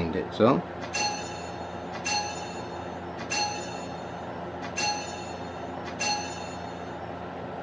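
A bright game chime rings several times.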